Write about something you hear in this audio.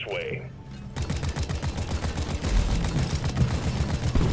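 An automatic gun fires rapidly.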